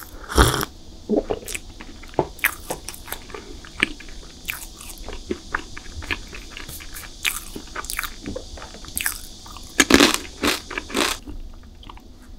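A young woman chews crunchy chocolate close to a microphone.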